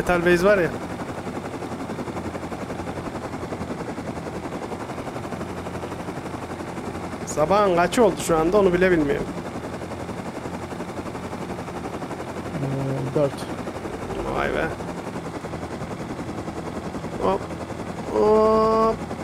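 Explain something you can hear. A small helicopter engine drones steadily with a fast rotor chop.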